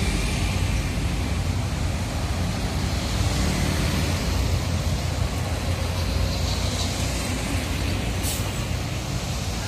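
Cars drive past on a busy road.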